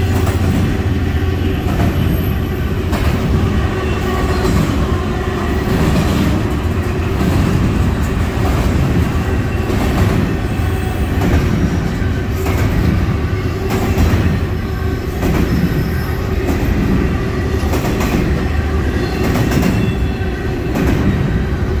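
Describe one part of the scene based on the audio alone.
A freight train rumbles steadily past nearby.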